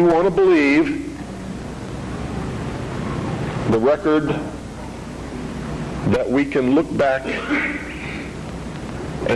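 An elderly man speaks with animation into a microphone, heard through a loudspeaker in a large hall.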